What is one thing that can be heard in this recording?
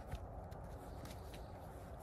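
A dog rolls and rustles in the snow.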